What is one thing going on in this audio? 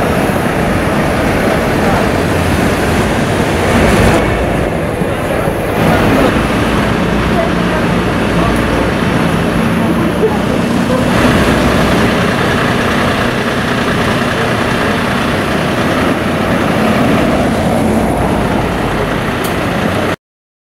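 A fire engine's motor idles with a low rumble.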